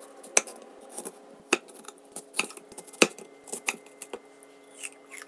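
A knife cuts through an apple and taps on a wooden board.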